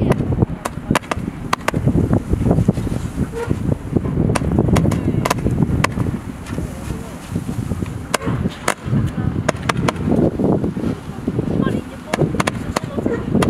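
Fireworks crackle and fizz overhead.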